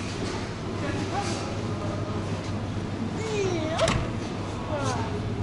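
Shoppers talk quietly nearby.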